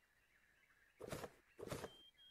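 A knife slashes and strikes flesh.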